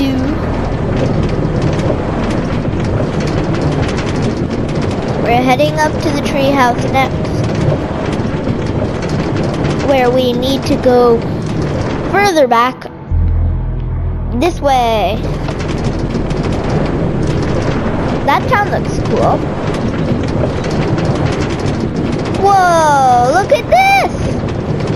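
A minecart rattles steadily along rails.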